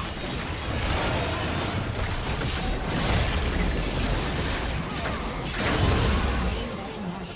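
Game combat effects clash and crackle loudly.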